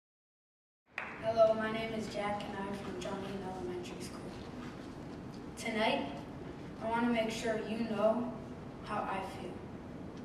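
A young man speaks calmly through a microphone in a large hall.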